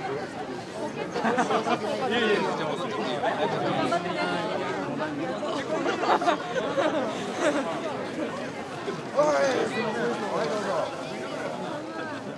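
Men shout and chant loudly in a crowd outdoors.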